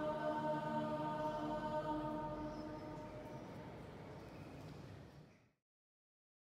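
A choir sings a held chord that rings out and fades in a large echoing hall.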